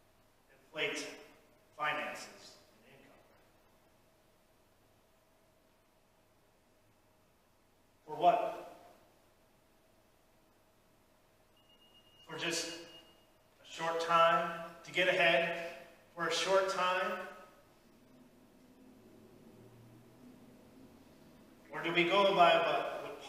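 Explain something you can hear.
A man speaks calmly in short phrases in an echoing hall.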